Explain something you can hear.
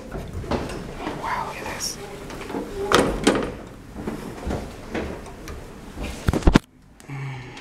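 A metal folding gate rattles and clanks shut.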